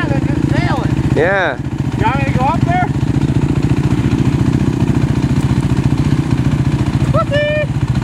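A quad bike engine putters steadily close by.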